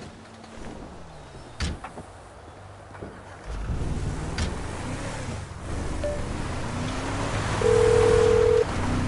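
A pickup truck engine idles and then revs as the truck pulls away.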